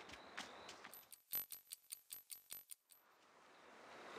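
A clock ticks quickly.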